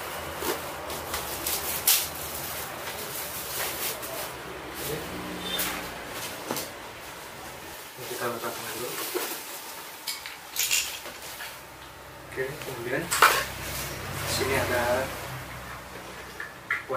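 A backpack's fabric rustles and its buckles click as it is handled.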